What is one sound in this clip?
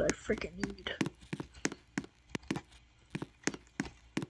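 Footsteps tap steadily on the ground.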